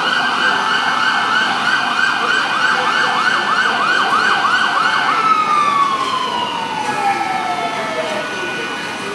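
A fire engine siren wails rapidly nearby, then winds down and stops.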